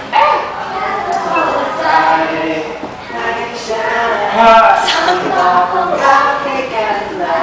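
Upbeat pop music with singing plays through a loudspeaker.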